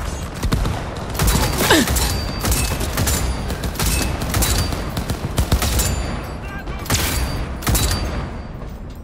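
Gunfire bursts out in loud, rapid shots.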